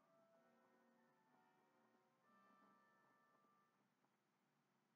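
Game music plays with soft chiming tones.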